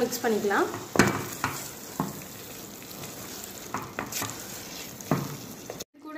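A wooden spatula scrapes and stirs food in a metal pot.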